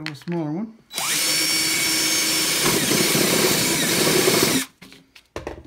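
A power drill whirs loudly, boring through a thin metal can lid.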